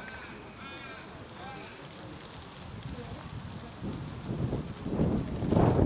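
Wind blows outdoors, rumbling more strongly toward the end.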